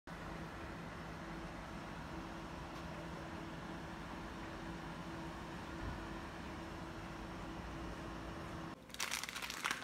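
A steady outdoor breeze rustles through trees.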